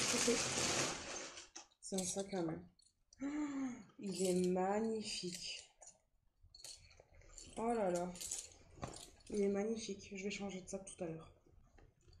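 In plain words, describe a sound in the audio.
Fabric rustles as a bag is handled close by.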